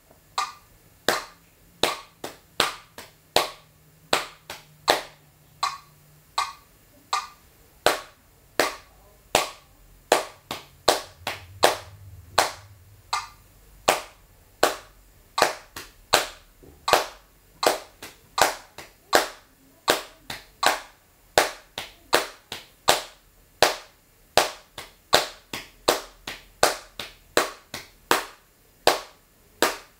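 Hands slap on thighs in a steady rhythm.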